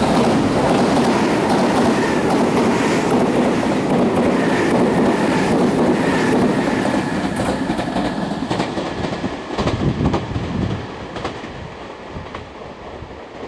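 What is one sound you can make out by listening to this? Train wheels clack rhythmically over rail joints.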